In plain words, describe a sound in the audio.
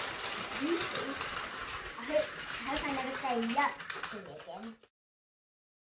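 A toy train rattles along a plastic track.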